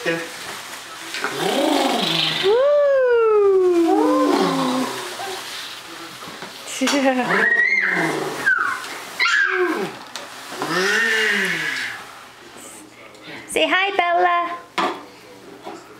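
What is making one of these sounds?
A baby squeals and babbles with delight.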